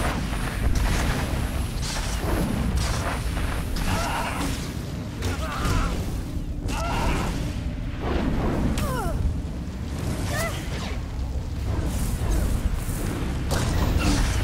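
Energy blasts crackle and zap in rapid bursts.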